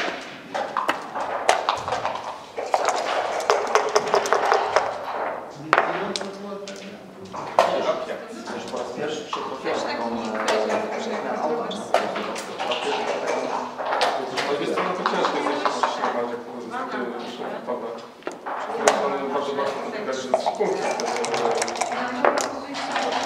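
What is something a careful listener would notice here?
Game pieces click against a wooden board.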